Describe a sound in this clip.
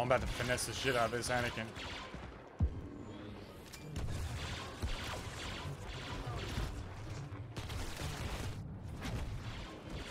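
Jetpack thrusters roar in bursts.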